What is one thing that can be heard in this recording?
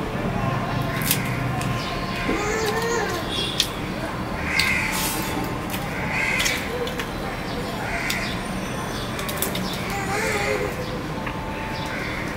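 A man chews food, smacking loudly.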